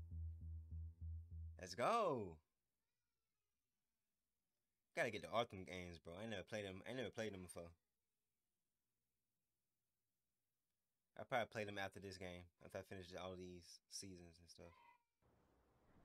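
A man speaks animatedly into a microphone, close by.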